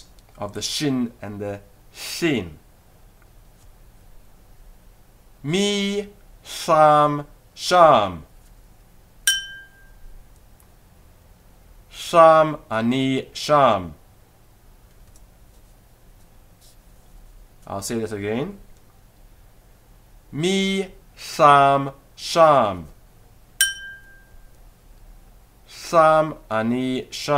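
A man speaks animatedly in short bursts, close to a microphone.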